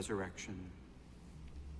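A man speaks briefly through a microphone in a large echoing hall.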